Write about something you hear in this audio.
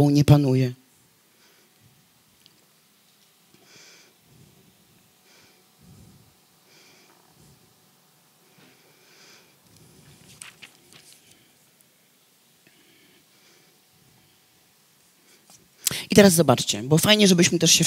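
A woman reads aloud in a large room, heard from a distance.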